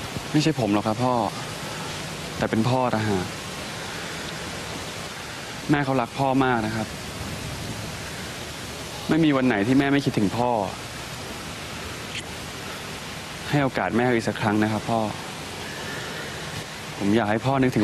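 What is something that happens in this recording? A young man speaks softly and earnestly, close by.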